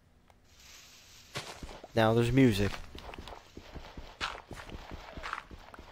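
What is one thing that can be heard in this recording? A pickaxe digs repeatedly into soft earth.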